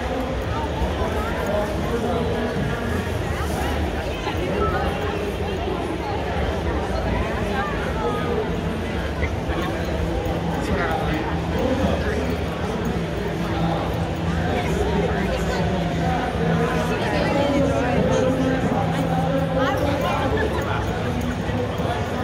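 A large crowd chatters all around in a big echoing hall.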